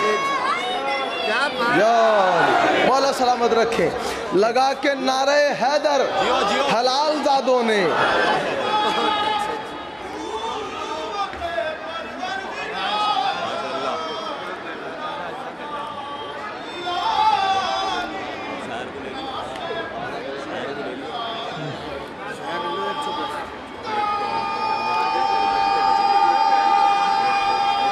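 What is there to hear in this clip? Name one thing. A crowd of men sings and chants loudly together.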